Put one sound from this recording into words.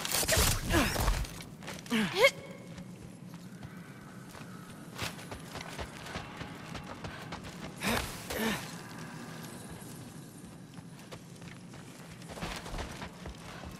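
Footsteps crunch on gravelly ground.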